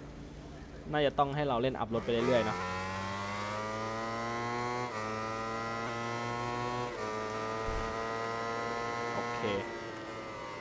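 A motorcycle engine roars and climbs in pitch through quick gear changes.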